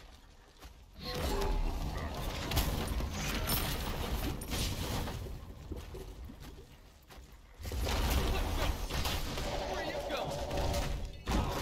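Fiery game blasts roar and crackle.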